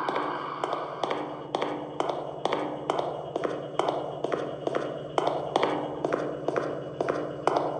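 Footsteps thud at a steady pace on a hard floor.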